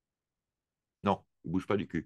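A man speaks briefly, close to a microphone.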